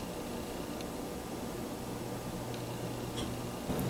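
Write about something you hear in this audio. A small brush dabs softly on a hard surface.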